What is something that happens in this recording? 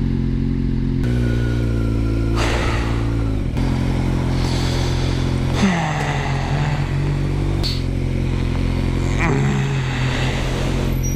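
A motorcycle engine revs up loudly in short bursts.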